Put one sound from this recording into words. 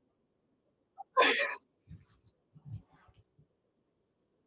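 A man laughs heartily, heard through a microphone.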